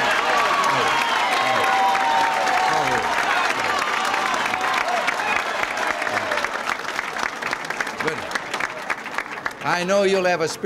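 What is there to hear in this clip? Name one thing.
An audience applauds and laughs loudly.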